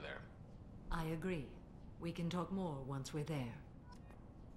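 A woman speaks calmly and evenly.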